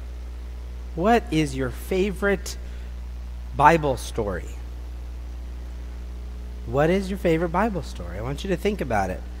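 A man speaks loudly in a large hall.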